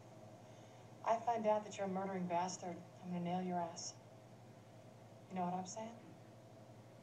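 A woman speaks firmly, close by.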